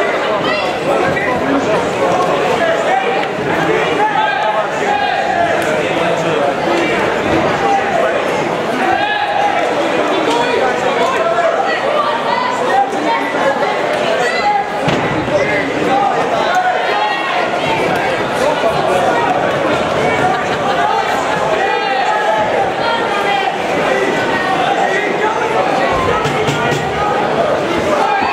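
Men shout instructions and encouragement close by.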